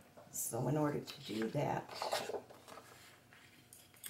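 A sheet of paper slides and rustles across a table.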